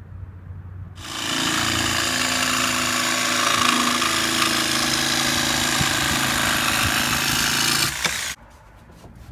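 A jigsaw buzzes loudly, cutting through wood.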